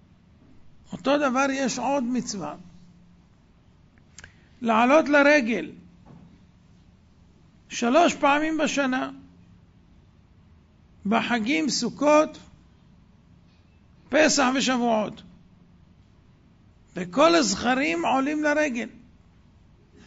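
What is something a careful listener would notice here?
A middle-aged man speaks into a microphone with animation, in short phrases with pauses between them.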